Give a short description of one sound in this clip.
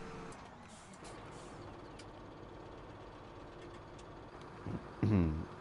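A tractor engine rumbles.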